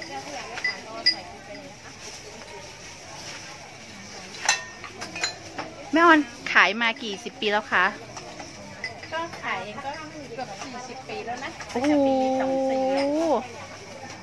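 Spoons clink against ceramic bowls.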